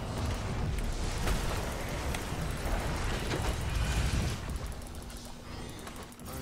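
Video game battle effects clash and crackle.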